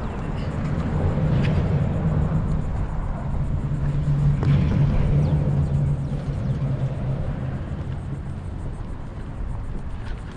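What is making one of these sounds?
A fishing reel clicks softly as its handle is cranked.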